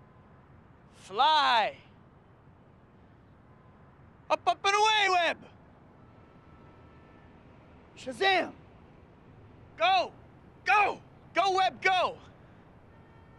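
A young man shouts short, excited exclamations close by.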